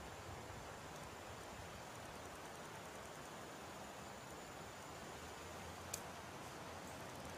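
A river rushes steadily outdoors.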